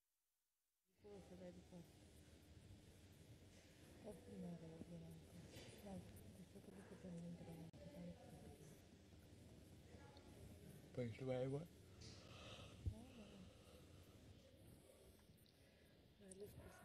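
A young man speaks softly and quietly.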